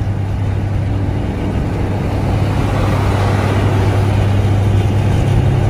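A car's engine hums steadily from inside while driving on a highway.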